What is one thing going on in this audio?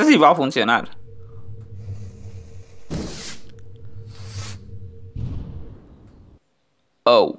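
A rocket fizzes and roars as it launches.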